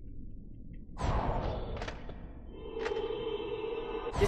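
A magic spell crackles and hums.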